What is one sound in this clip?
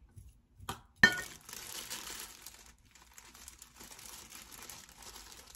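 Plastic gloves crinkle and rustle.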